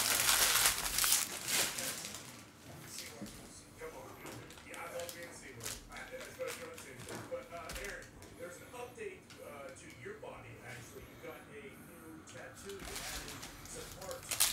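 Trading cards rustle and slide as they are handled.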